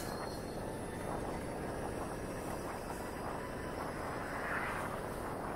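Wind rushes and buffets loudly past a moving scooter.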